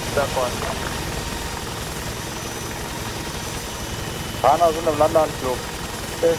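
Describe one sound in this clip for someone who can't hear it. A helicopter engine and rotor drone steadily close by.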